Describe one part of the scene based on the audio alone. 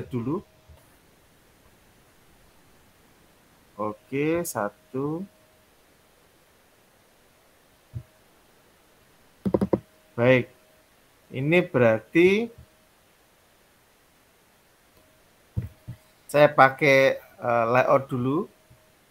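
A young man speaks calmly in bursts over an online call.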